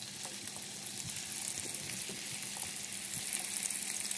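Patties drop softly into hot oil.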